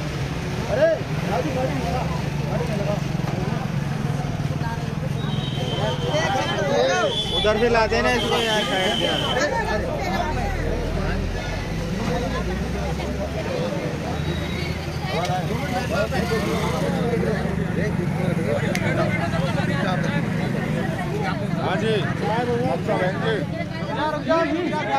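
A young man speaks loudly to a crowd, outdoors.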